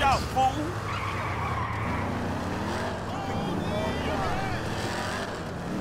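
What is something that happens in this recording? A car engine revs as the car pulls away.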